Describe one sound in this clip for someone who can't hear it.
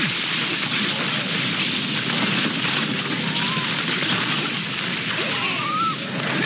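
Monsters shriek and groan as they are struck.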